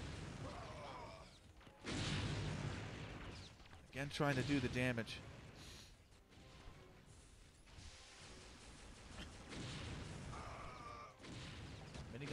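Energy weapons fire in crackling, buzzing blasts.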